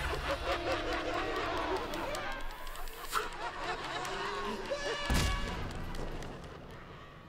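A man laughs maniacally nearby.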